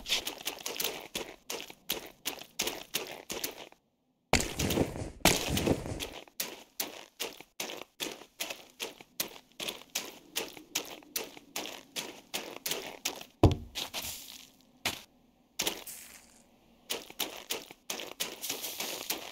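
Quick, repeated hitting sounds land on a creature again and again.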